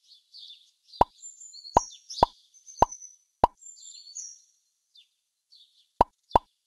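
Short pops sound as numbers are collected.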